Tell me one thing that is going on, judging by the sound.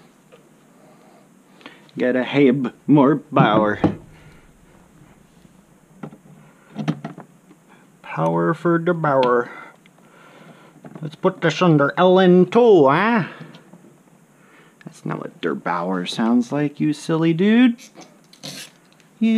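Computer power cables rustle and click as they are plugged into a computer.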